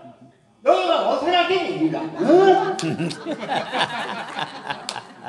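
A woman speaks dramatically through a loudspeaker in an echoing hall.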